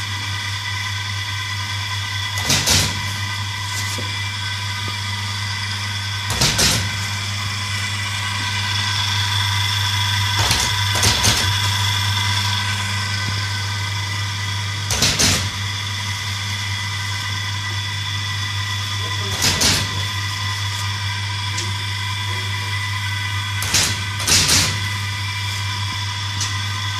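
An electric motor hums steadily close by.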